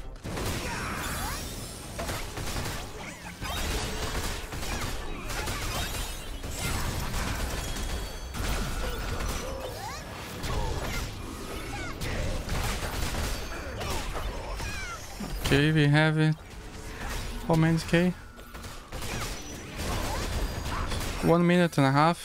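Magic spells crackle and explode in quick bursts.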